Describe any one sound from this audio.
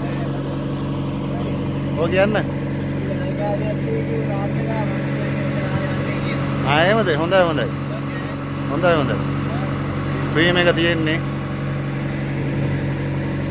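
A boat engine hums steadily as the boat moves across open water.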